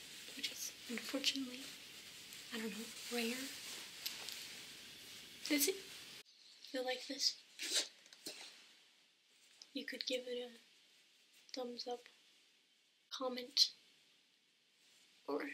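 A young woman talks calmly and close by, in short phrases with pauses.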